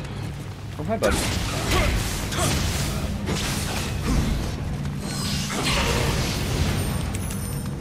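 Blades clash and strike sharply in a fight.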